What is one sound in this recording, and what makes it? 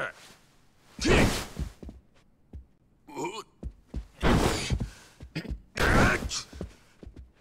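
Heavy blows thud and slam.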